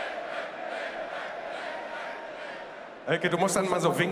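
A large crowd sings together outdoors.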